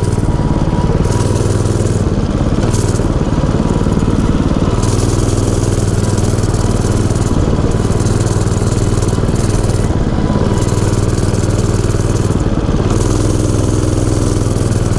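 A small engine drones steadily close by, rising and falling as it revs.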